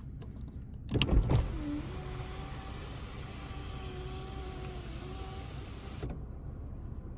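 An electric sunroof motor whirs as the roof slides open.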